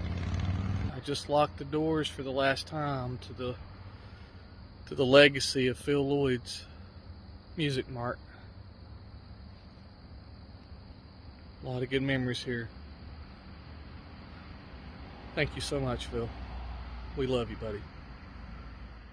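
A man speaks close by, calmly, in short bursts.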